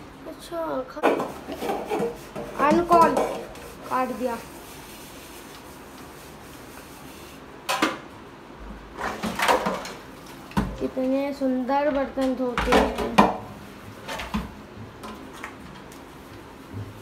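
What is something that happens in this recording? Metal dishes clatter and clink in a sink.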